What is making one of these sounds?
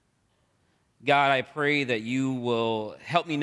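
A man speaks calmly through a microphone in a reverberant room.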